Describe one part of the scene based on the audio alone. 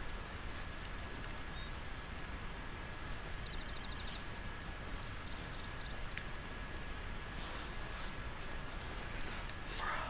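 Footsteps rustle through dense undergrowth.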